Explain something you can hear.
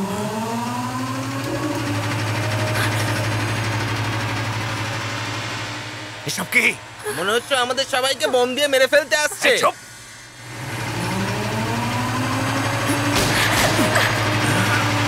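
Truck engines roar as trucks drive closer.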